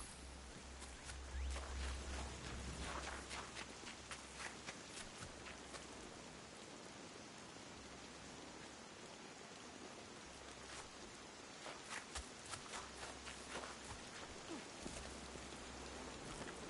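Quick footsteps run over ground.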